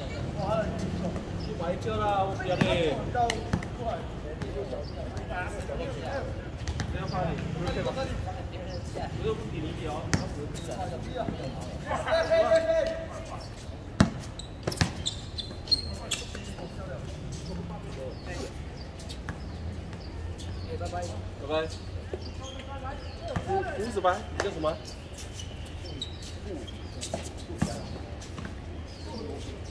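Sneakers squeak and scuff on the court.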